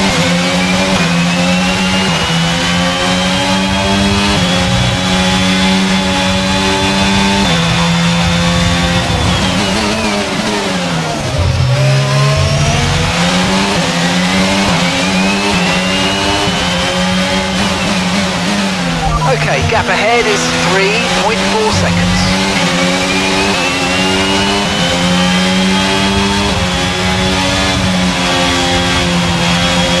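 A racing car engine screams at high revs, dropping in pitch as it slows for corners and rising again as it speeds up.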